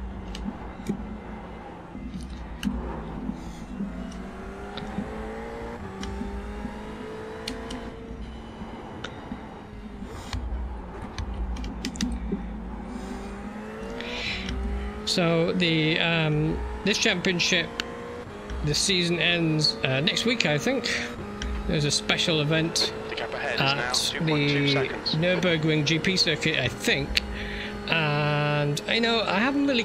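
A racing car engine revs high and climbs through the gears.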